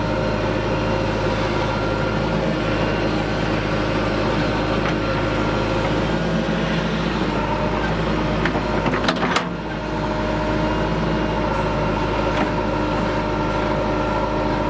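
A diesel engine runs with a steady hum.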